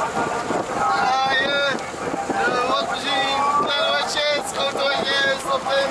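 A young man sings loudly close by.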